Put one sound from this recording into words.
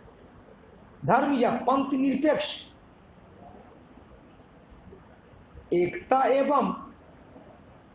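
A man speaks calmly in short phrases through a close microphone.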